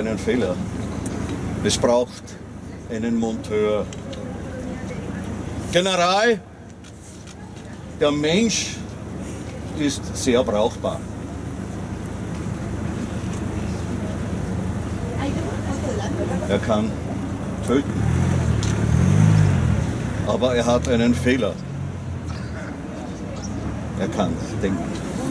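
An elderly man talks calmly outdoors.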